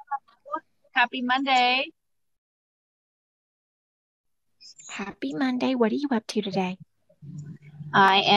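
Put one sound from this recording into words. A middle-aged woman talks animatedly into a phone microphone.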